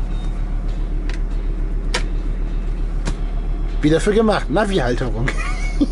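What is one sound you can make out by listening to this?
Buttons click on a car radio.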